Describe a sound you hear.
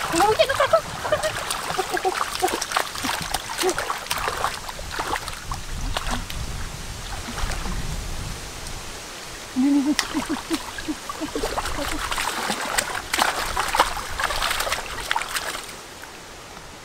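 Hands splash and slosh through shallow muddy water.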